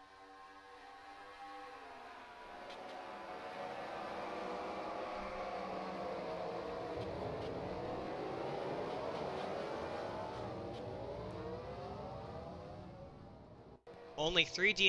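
Racing car engines roar and whine past, rising and falling in pitch.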